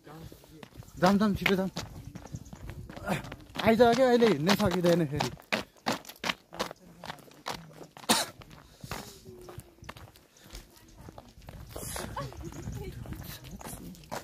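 Young women talk with animation nearby outdoors.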